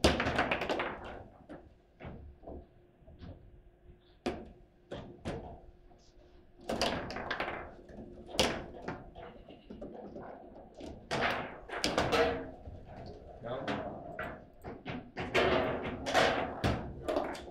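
Foosball rods clatter as they spin and slide.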